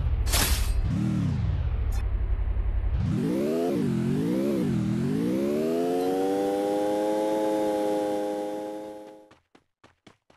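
A car engine revs up and down as the car drives over grass.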